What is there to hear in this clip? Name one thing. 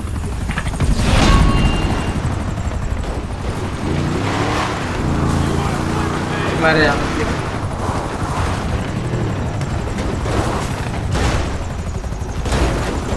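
Truck suspension thuds and bangs over bumps.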